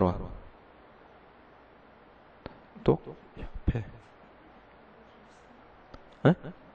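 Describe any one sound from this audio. A man speaks into a microphone in short bursts with pauses.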